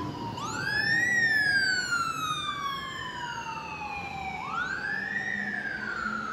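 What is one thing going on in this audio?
An engine hums as a van drives past.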